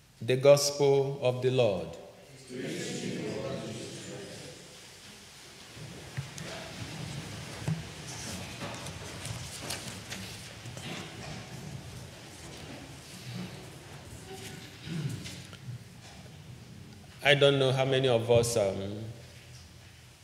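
A young man sings out loudly through a microphone in an echoing room.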